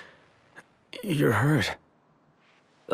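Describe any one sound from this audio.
A young man answers briefly in a low voice.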